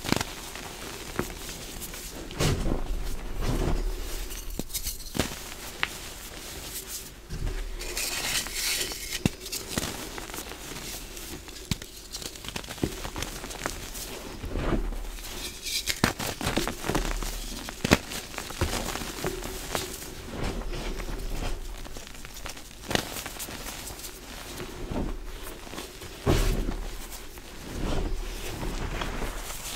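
Hands squeeze and crumble soft chalky powder, crunching and crackling close up.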